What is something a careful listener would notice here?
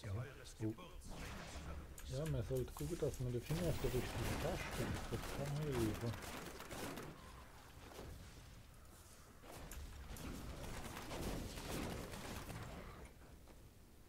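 Spells crackle and blast in a video game battle.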